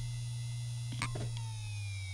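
A hard drive clicks sharply once.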